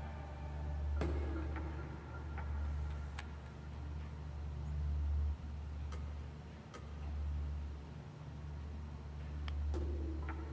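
Puzzle pieces click sharply as they turn.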